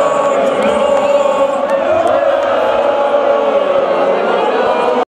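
Loud live music plays through speakers in a large echoing hall.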